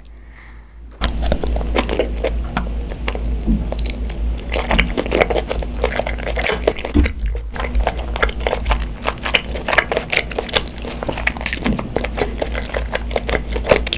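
A young girl chews food wetly and noisily, very close to microphones.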